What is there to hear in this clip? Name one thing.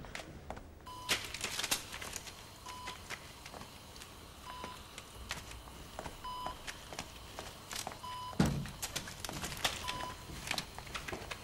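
A medical monitor beeps at an even pace.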